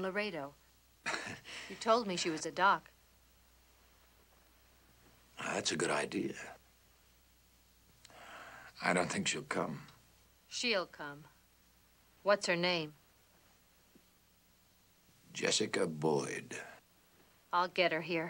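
A wounded man speaks weakly, in a strained, breathy voice.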